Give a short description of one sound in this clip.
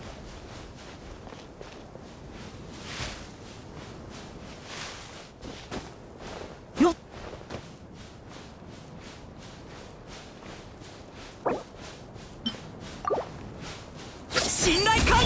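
Footsteps patter quickly on sand.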